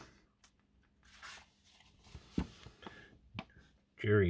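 Paper pages rustle and flap as a booklet is leafed through.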